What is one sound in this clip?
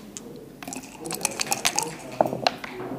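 Dice rattle inside a cup.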